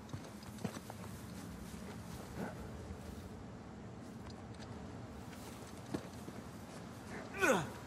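Footsteps crunch on dry grass.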